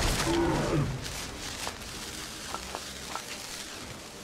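Soft clicks sound as items are picked from a menu.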